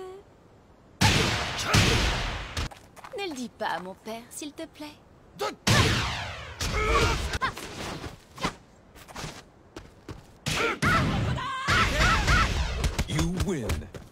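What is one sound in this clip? Punches and kicks land with heavy thuds and bursts.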